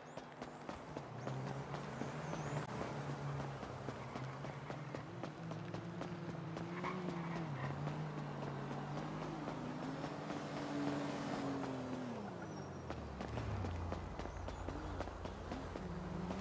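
A motorcycle engine revs and drones nearby.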